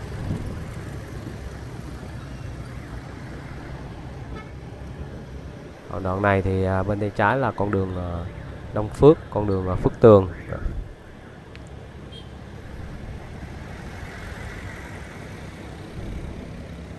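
Motorbikes pass by in traffic.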